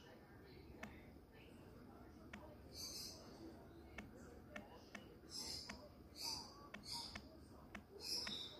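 Phone keyboard taps click lightly and quickly.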